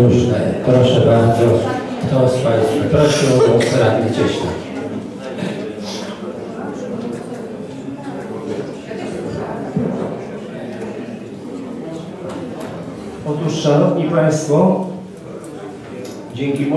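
A man speaks in a large echoing hall.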